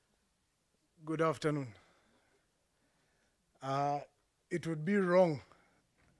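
A man speaks into a microphone in short phrases with long pauses.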